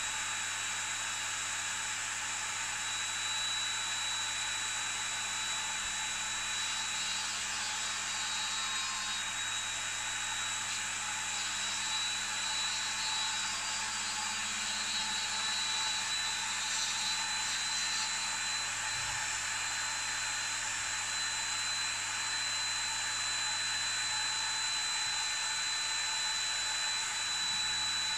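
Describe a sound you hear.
A small rotary tool whines steadily at high speed.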